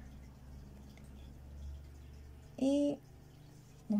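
A small plastic clip clicks shut on yarn.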